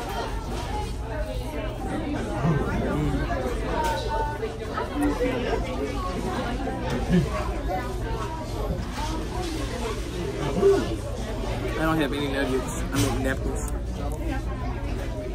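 A young man chews food with his mouth near the microphone.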